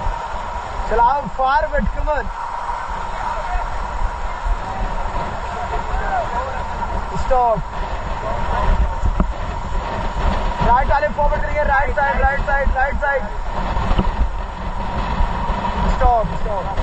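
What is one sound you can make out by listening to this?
A group of young men and women shout and cheer together.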